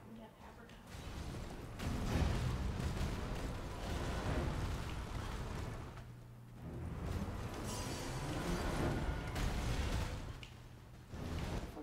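A horse gallops over rough ground.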